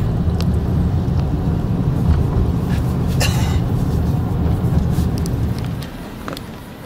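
Car tyres rumble over a rough dirt road.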